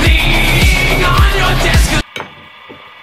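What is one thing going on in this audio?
A chisel scrapes and cuts loudly into wood spinning on a lathe.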